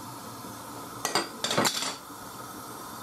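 A wooden spatula scrapes and knocks against a pot.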